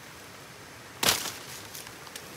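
A blade chops through a thick plant stalk with a sharp crack.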